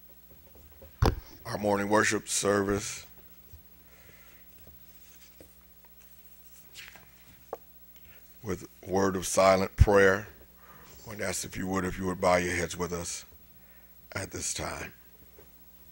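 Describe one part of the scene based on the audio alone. A man speaks through a microphone in short bursts with long pauses.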